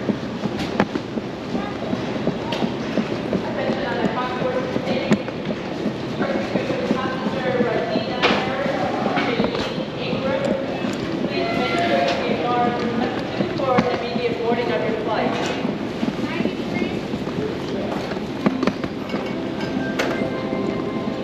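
Voices murmur faintly in a large echoing hall.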